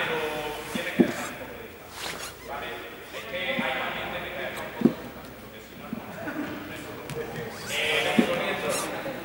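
A ball bounces on a hard floor with sharp thuds.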